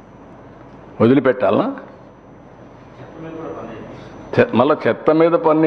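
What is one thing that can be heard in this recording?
An older man speaks firmly into a microphone.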